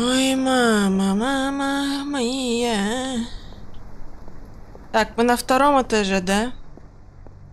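A young boy speaks loudly and excitedly into a headset microphone, close up.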